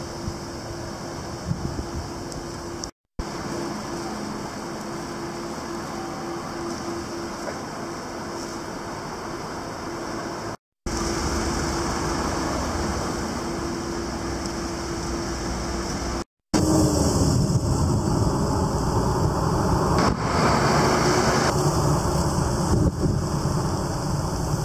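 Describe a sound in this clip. Traffic hums steadily along a nearby road.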